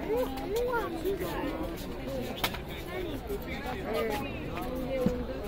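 Several women talk and chatter nearby in a busy crowd.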